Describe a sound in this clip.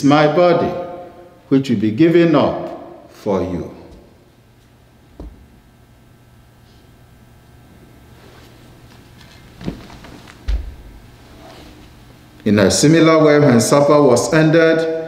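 A man chants through a microphone in an echoing room.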